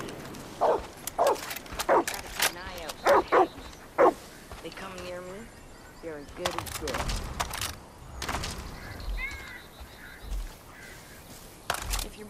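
Footsteps crunch on dry grass and gravel.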